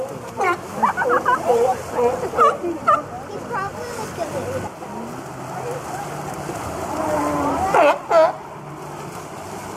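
Water splashes and churns as sea lions swim.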